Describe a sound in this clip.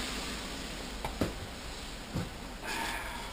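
Metal tools clank and knock.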